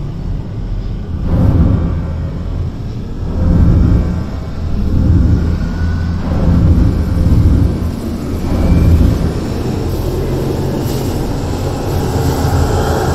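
Deep rumbling magical energy swells and fades in repeated waves.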